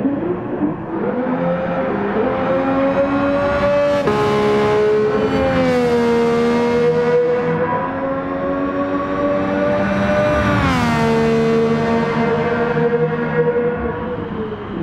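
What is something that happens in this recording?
A racing car's engine screams at high revs, with pitch rising and dropping as it shifts gears.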